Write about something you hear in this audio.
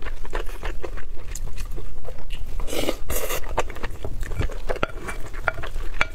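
A spoon scrapes and clinks against a glass bowl.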